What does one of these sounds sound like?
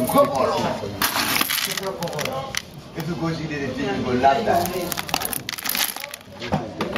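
Small hard seeds rattle and rustle in a hand.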